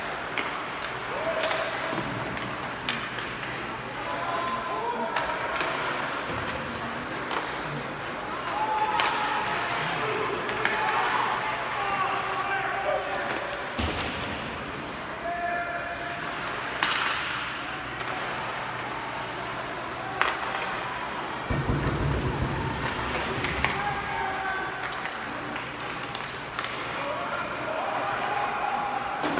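Hockey sticks clack sharply against the puck.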